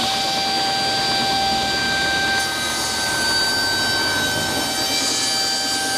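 A table saw blade cuts through wood.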